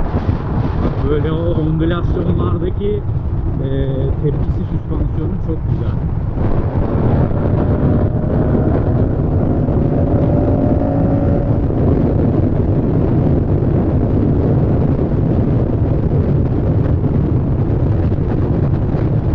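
Wind rushes loudly past the rider, growing stronger as the speed rises.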